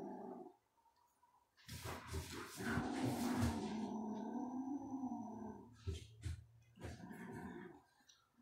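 A kitten chews and tears at its prey with wet crunching sounds.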